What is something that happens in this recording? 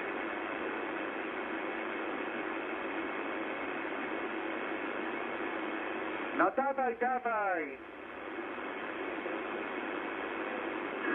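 A shortwave radio hisses with steady static.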